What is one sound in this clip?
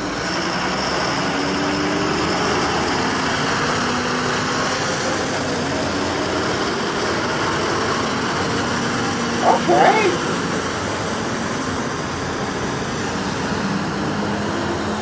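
A two-tone siren wails on fire trucks pulling away.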